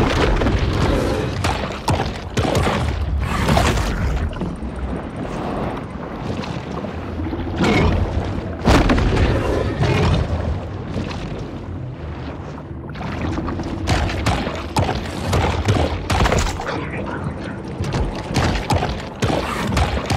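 A deep muffled underwater rumble of moving water goes on throughout.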